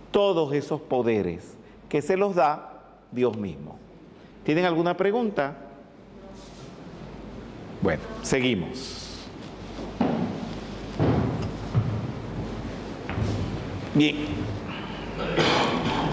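An elderly man speaks with animation.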